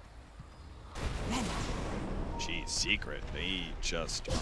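Magical spell effects whoosh and crackle in a fight.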